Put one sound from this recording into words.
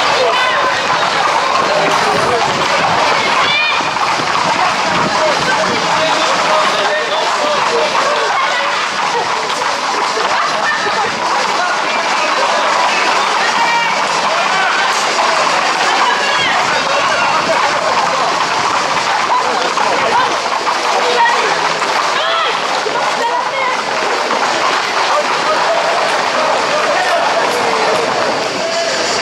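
Horse hooves clatter on pavement.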